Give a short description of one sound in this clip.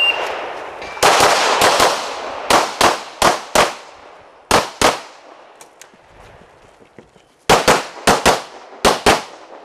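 A pistol fires rapid shots outdoors, each crack echoing.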